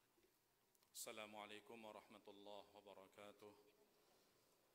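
A man speaks calmly into a microphone over a loudspeaker in an echoing hall.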